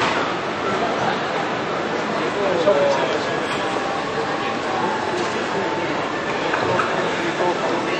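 A crowd of people chatters loudly nearby.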